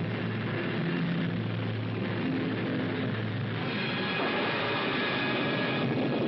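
A rocket engine roars steadily.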